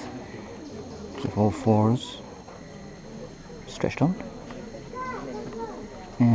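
A small group of people murmur quietly in the background.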